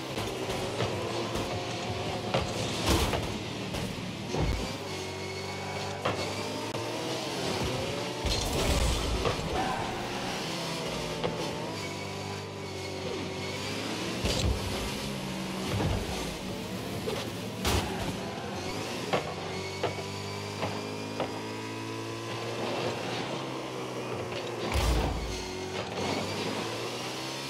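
A car engine hums and revs steadily.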